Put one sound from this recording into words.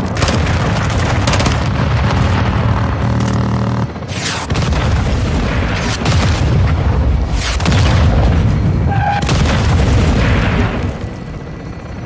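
A gun fires rapid bursts close by.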